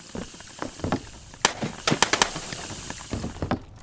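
Footsteps thud on wooden stairs.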